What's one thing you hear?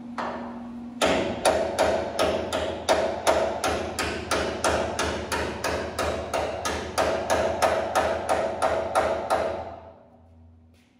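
A power tool grinds against metal in rapid, even pulses, then stops.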